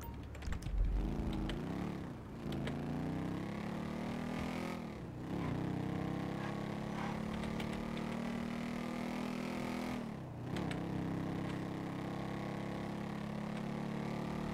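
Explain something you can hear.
A motorcycle engine revs up, dropping in pitch at each gear change.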